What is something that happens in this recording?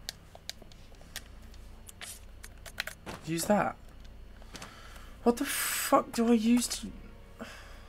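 Short electronic menu clicks and beeps sound in quick succession.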